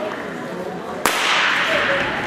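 A starting pistol fires with a sharp crack that echoes through a large hall.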